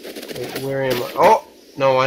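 Electronic sword slashes swish in a video game.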